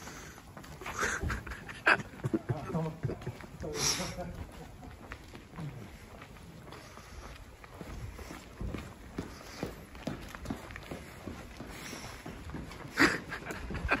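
Footsteps scuff on a paved street outdoors.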